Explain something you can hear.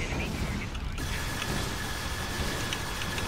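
An energy weapon fires with a buzzing hum.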